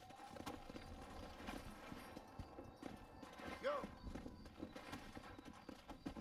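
A horse's hooves thud on the ground.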